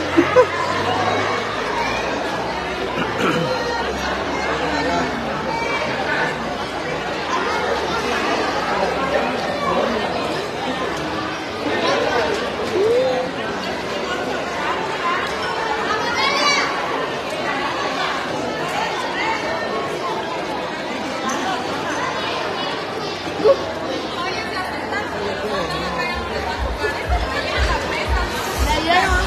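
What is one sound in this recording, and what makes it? A crowd of people chatters and laughs nearby throughout.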